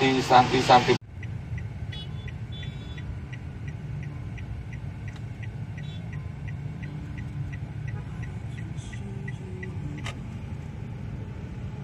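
A car engine hums low and steadily.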